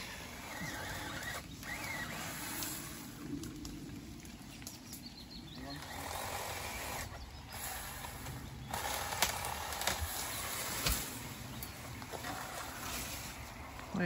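Pruning shears snip through branches.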